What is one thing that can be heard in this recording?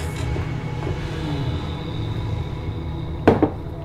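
A glass clinks as it is set down on a desk.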